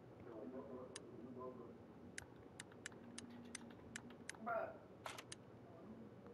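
Short sharp clicks sound as menu items are selected.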